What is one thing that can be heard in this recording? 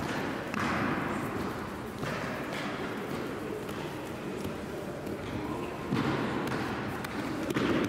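Bare feet shuffle on a mat.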